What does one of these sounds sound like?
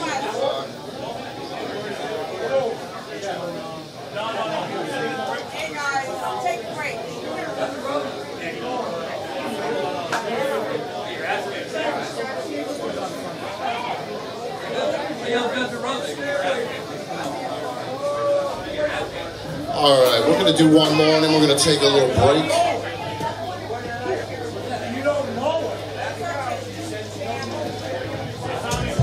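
A drum kit beats a steady rock rhythm.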